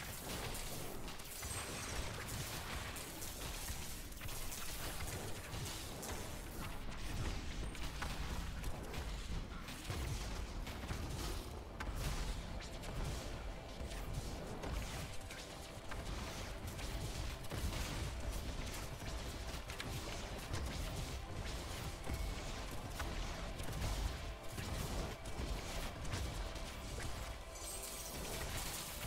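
Game spell effects crash and explode rapidly.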